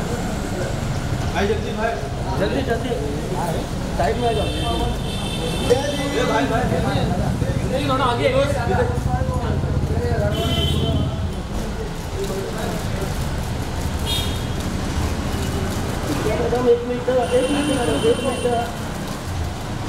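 Several men talk and call out nearby.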